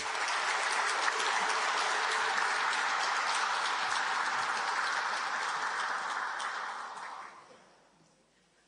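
An audience applauds in a large hall, then the applause fades.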